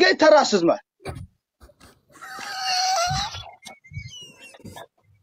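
Young men laugh loudly over an online call.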